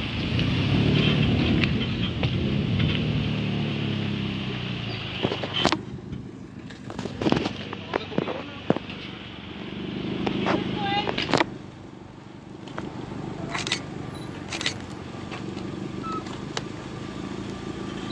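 A vehicle engine idles with a low rumble.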